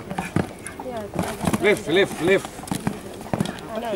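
A horse lands with a thud after a jump.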